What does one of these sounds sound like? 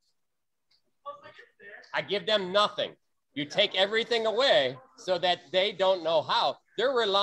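An elderly man speaks with animation over an online call.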